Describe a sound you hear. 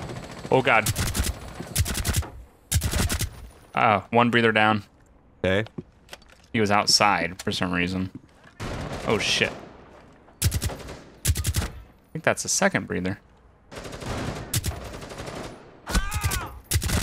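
A rifle fires in short rapid bursts.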